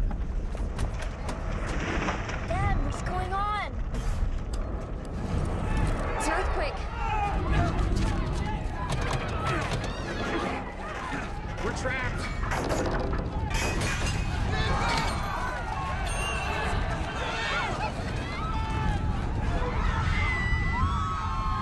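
A crowd of people screams and shouts in panic outdoors.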